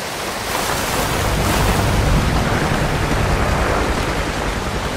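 Water rushes over rocks in a stream.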